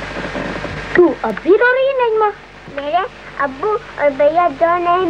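A young girl speaks in a high, wavering voice close by.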